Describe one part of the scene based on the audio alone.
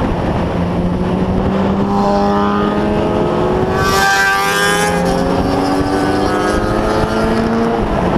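Other motorcycles' engines rise and fall in pitch ahead.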